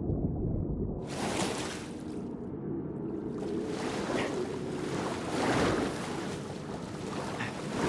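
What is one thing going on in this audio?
Water splashes as a swimmer paddles at the surface.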